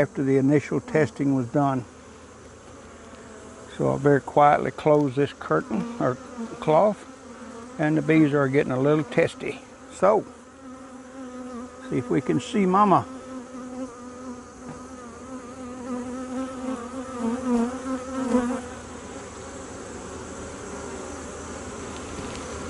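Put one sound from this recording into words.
Many bees buzz close by with a steady, wavering hum.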